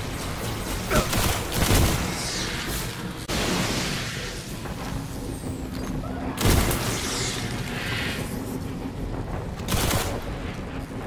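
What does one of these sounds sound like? Gunshots fire in short, loud bursts.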